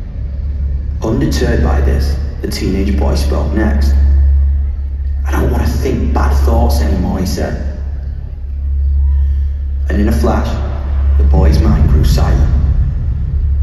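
A singer sings through loudspeakers in a large echoing hall.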